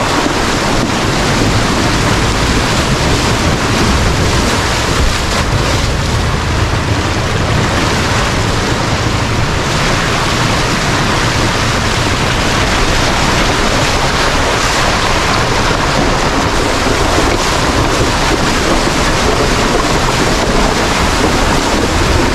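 Water splashes and sloshes under tyres driving through a muddy creek.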